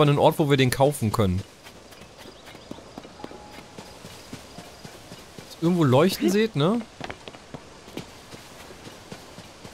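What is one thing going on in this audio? Footsteps rustle quickly through grass.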